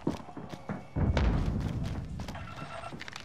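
A gunshot booms.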